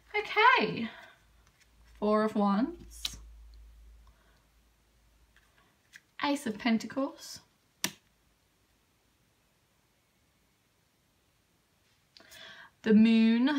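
Playing cards are laid down softly on a table.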